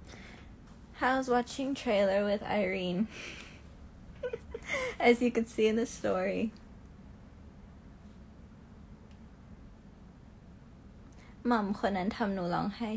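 A young woman talks cheerfully and close to a phone microphone.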